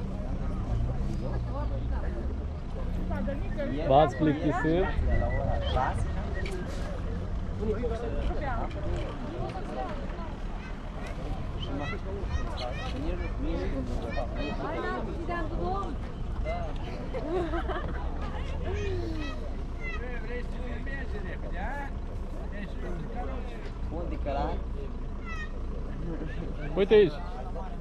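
A young man talks nearby, outdoors.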